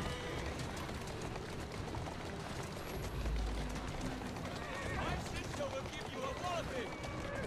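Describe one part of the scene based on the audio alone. Carriage wheels rumble over a stone street.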